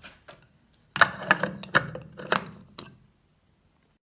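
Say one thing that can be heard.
A plastic lid clatters as it is set in place.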